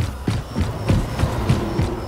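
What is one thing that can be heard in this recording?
An energy weapon crackles and buzzes in short bursts.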